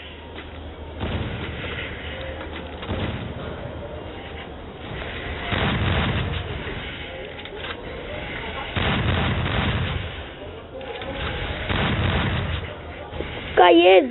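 Ice walls crack and rumble as they burst up from the ground.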